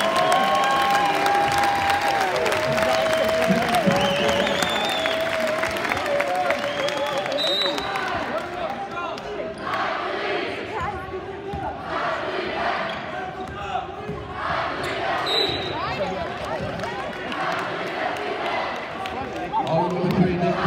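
A large crowd cheers and shouts in a large echoing gymnasium.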